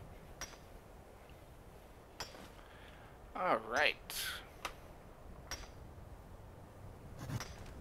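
A pickaxe strikes rock with sharp clinks.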